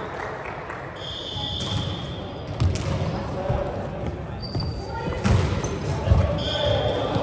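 Sneakers squeak on a wooden court in an echoing hall.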